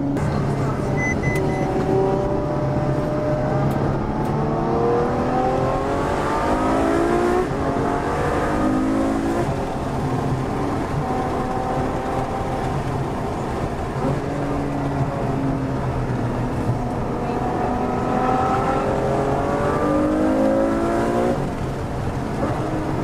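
A car engine roars loudly close by, revving up and dropping in pitch with each gear change.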